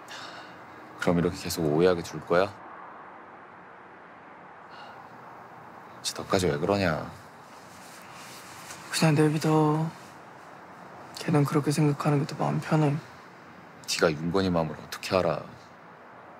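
A young man speaks softly and quietly, close by.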